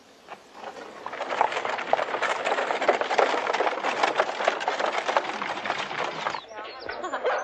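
Hooves clop and cart wheels rattle on a dirt road.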